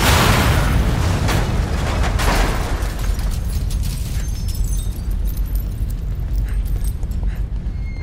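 A man runs on a hard floor.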